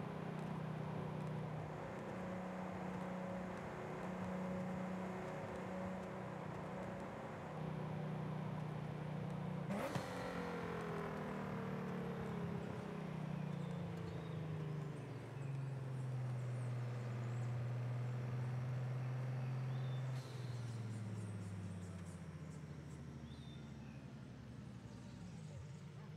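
A sports car engine roars steadily, dropping in pitch as the car slows and rising again through gear changes.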